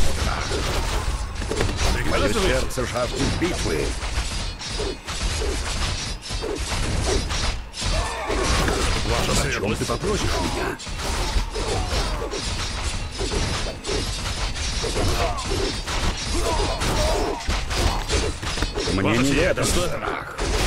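Swords clash and clang in a busy battle.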